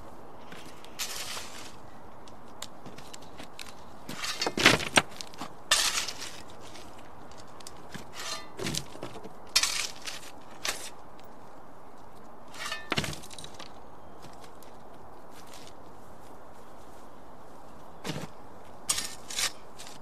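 A shovel scrapes and digs into loose soil.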